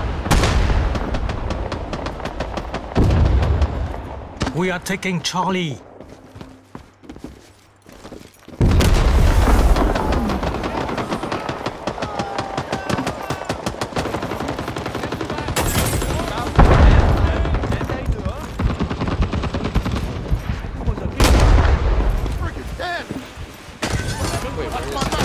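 Rapid gunfire crackles nearby.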